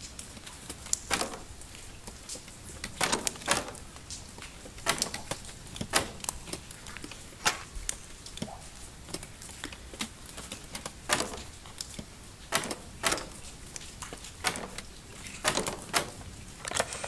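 A lock clicks sharply as it is picked, again and again.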